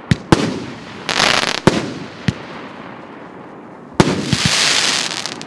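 Fireworks crackle and sizzle as they burst.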